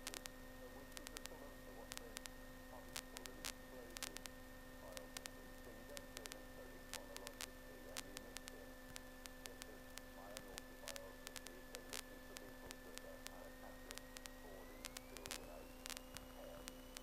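A man speaks through a headset radio.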